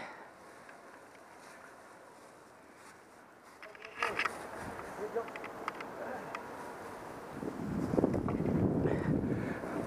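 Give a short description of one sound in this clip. Bicycle tyres roll and crunch over dry leaves and dirt.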